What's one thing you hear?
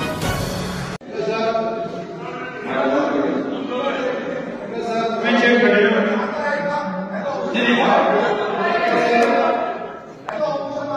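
Several men talk and shout over one another in a large echoing hall.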